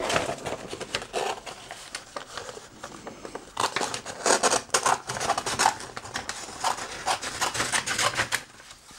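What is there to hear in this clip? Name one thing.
Scissors snip and slice through stiff paper.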